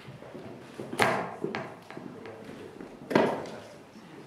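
A microphone thumps loudly as it is adjusted on its stand.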